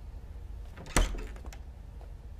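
A door opens with a knock of the latch.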